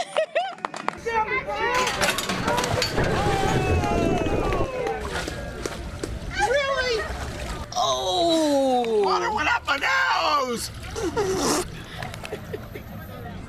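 An adult man shouts and whoops with excitement.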